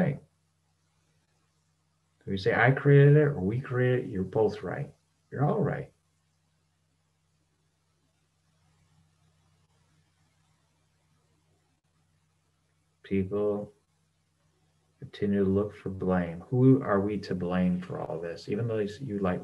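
A middle-aged man speaks calmly and thoughtfully, close to the microphone, heard over an online call.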